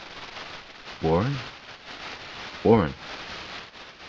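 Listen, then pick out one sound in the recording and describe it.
A man speaks in two short bursts close by.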